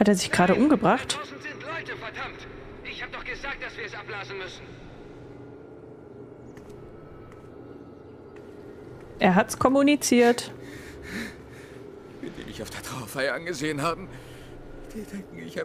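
A woman's voice speaks emotionally in a game's dialogue.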